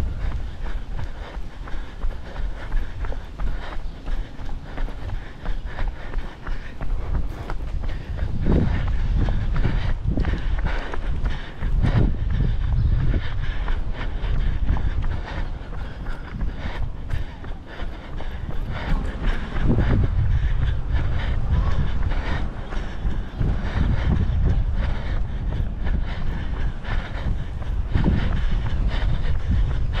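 Wind gusts blow across the microphone outdoors.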